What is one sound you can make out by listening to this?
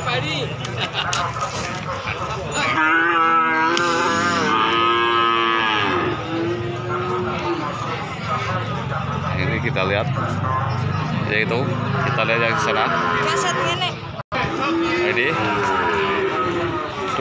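Men chatter in a busy outdoor crowd.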